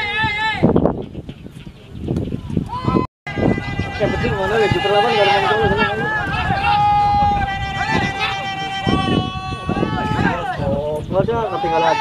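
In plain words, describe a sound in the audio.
A crowd of men chatter and call out outdoors.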